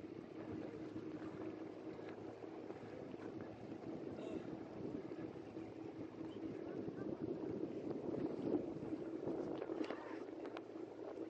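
A tractor engine rumbles steadily while driving through water.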